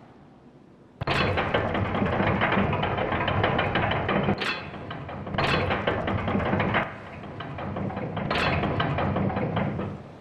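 A heavy crane motor grinds and rumbles.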